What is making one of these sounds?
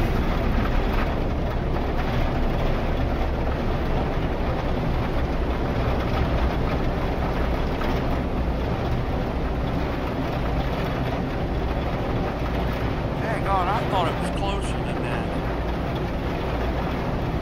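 A spacecraft engine rumbles steadily in flight.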